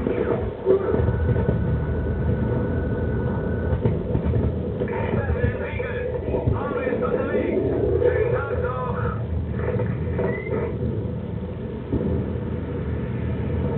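Heavy gunfire and explosions rumble on steadily.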